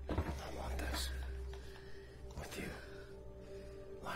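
A man speaks in a low, intimate voice.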